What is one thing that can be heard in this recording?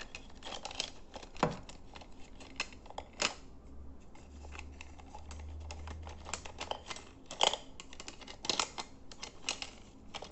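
Small objects click and tap against a glass surface close by.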